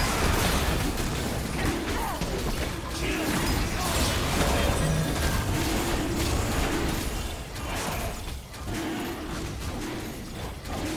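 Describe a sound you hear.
Fantasy spell effects whoosh and crackle in a hectic battle.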